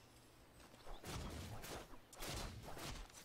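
Magic spells crackle and strike in a fight.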